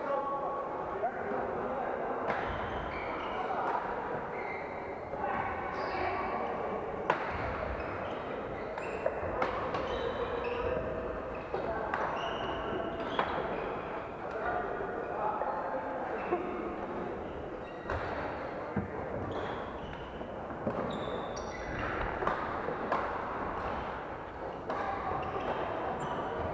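Many voices chatter and call out across a large echoing hall.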